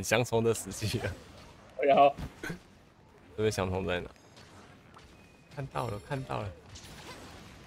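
A large sword swings with heavy whooshes.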